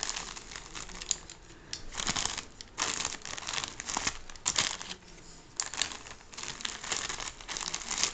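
A box cutter slices through plastic wrapping.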